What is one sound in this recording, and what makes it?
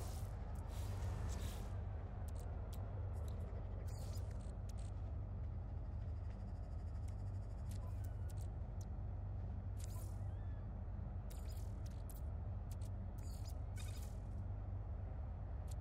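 Menu interface sounds click and chime as options are selected.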